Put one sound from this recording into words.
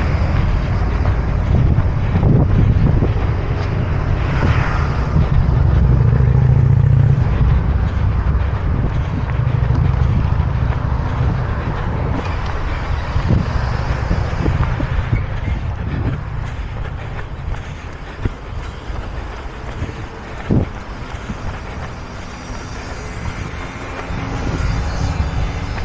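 Traffic hums along a nearby road.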